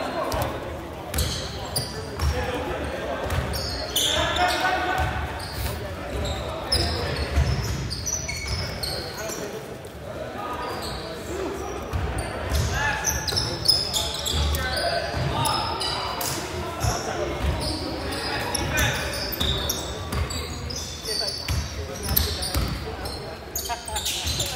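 A basketball bounces on a wooden court, echoing in a large hall.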